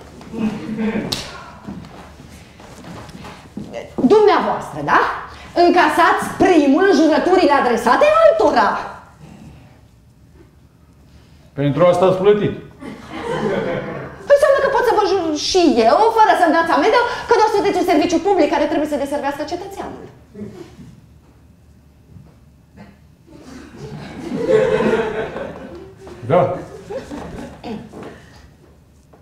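An elderly woman speaks with animation.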